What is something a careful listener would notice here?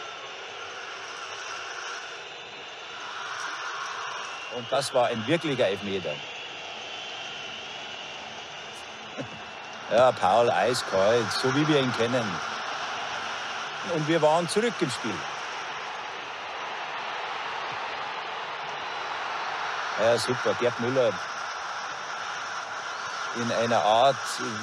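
A stadium crowd roars throughout.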